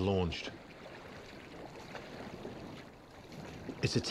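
Paddles dip and splash in calm water.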